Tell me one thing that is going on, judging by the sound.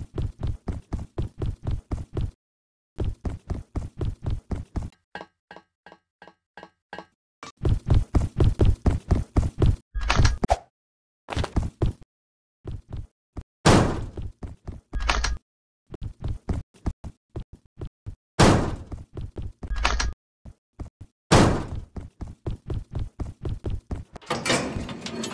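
Quick, even footsteps patter along a hard floor.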